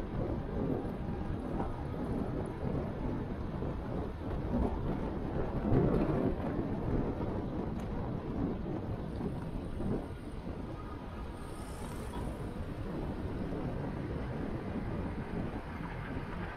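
Cars drive along a street nearby.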